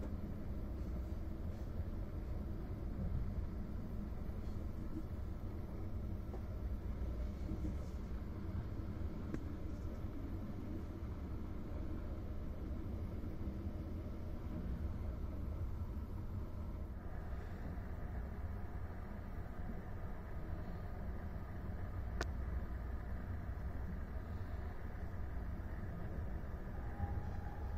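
A train rumbles steadily along the tracks, heard from inside a carriage.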